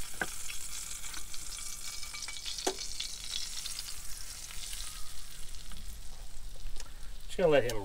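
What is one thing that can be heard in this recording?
Metal tongs scrape and clink against a pan and plate.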